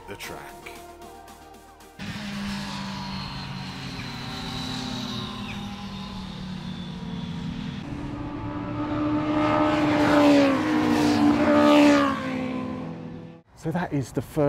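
Motorcycle engines roar past at speed.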